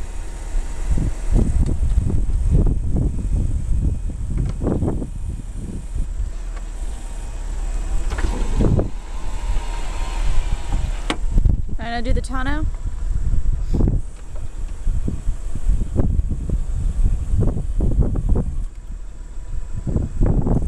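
An electric motor whirs as a car's folding roof moves.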